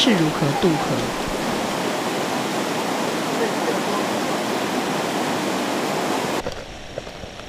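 A stream rushes loudly over rocks.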